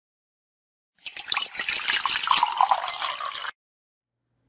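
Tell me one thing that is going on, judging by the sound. Coffee pours and splashes into a mug.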